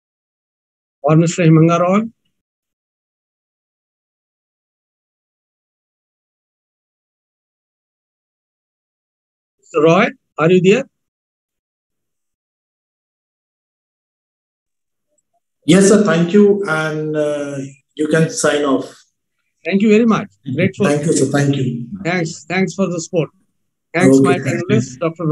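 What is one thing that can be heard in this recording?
A man speaks through an online call with pauses between phrases.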